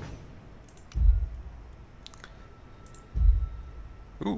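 A deep thud sounds as a menu choice is made.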